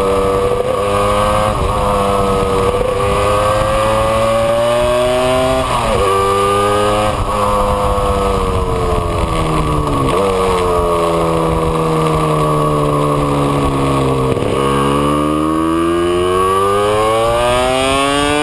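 Wind rushes past the rider at speed.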